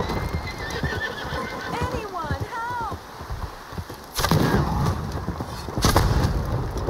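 A horse gallops along railway sleepers.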